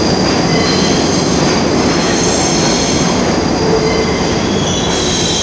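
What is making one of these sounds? A subway train rushes past with a loud, steady roar and rattle.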